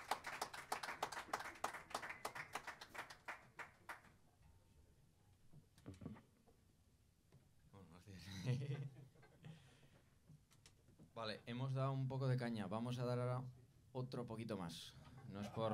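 A band plays jazzy music live.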